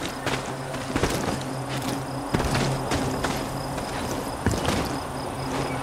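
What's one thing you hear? Footsteps crunch over dry grass and gravel.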